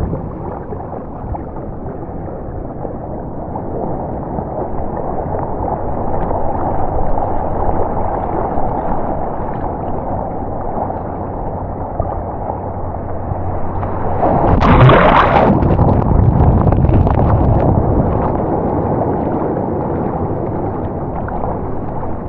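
Water laps and sloshes close by.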